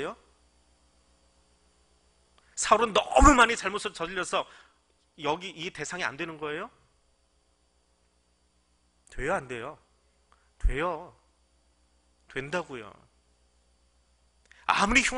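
A middle-aged man speaks calmly and deliberately through a microphone, with long pauses.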